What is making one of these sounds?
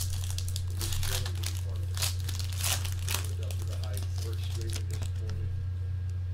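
A foil wrapper crinkles and rustles as hands tear it open.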